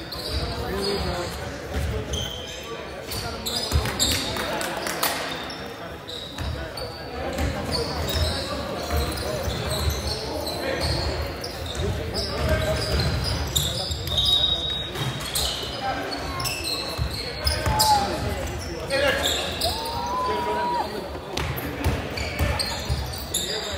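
Spectators murmur and call out nearby.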